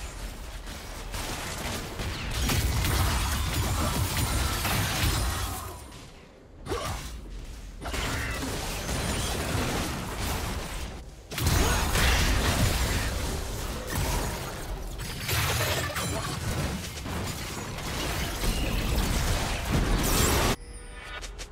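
Video game spells and weapon strikes clash in a busy fight.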